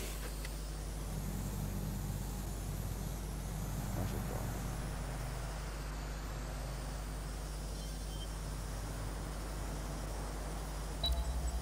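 A small drone buzzes steadily as it flies.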